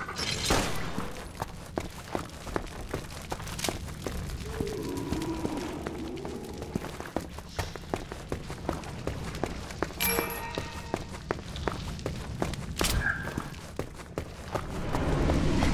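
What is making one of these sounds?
Footsteps tap steadily on a stone floor.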